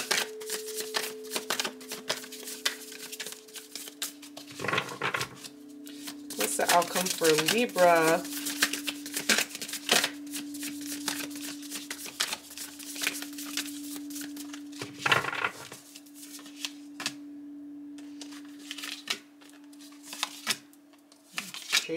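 Cards shuffle and slap together in hands.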